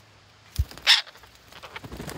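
A parrot squawks sharply close by.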